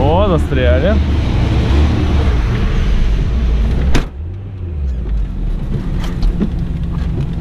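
A car engine idles with a low rumble.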